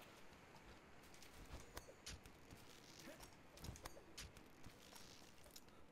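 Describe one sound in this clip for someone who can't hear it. Vines rustle and creak as someone climbs.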